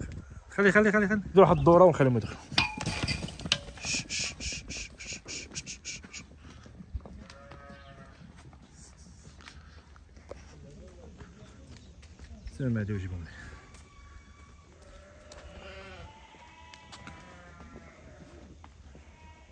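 Sheep bleat loudly, close by.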